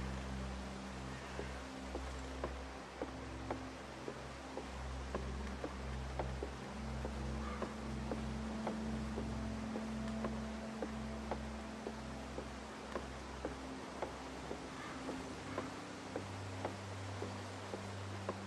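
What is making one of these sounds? Footsteps thud on wooden boards at a steady walking pace.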